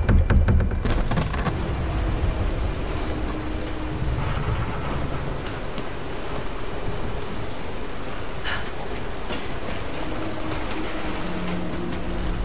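Water rushes and roars steadily nearby.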